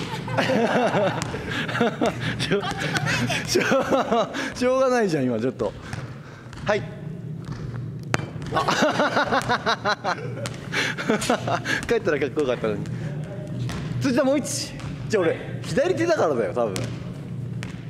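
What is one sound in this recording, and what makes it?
A volleyball bounces on a wooden floor.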